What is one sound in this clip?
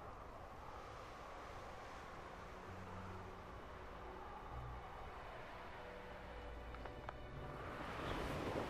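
Wind rushes steadily past, growing louder near the end.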